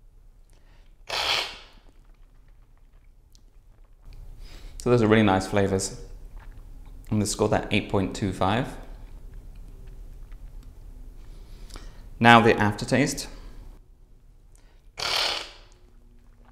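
A man slurps loudly from a spoon.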